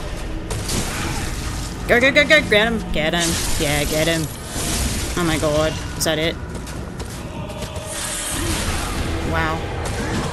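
Sword blows clash and thud in combat.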